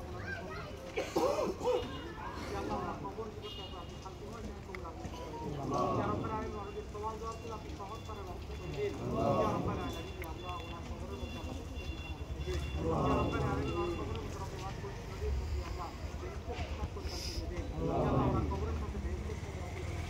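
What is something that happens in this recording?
A man leads a prayer aloud in a chanting voice, heard through a loudspeaker outdoors.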